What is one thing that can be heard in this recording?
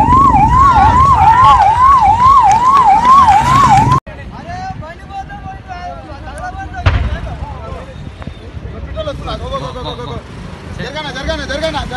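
A crowd of men shout and call out excitedly nearby.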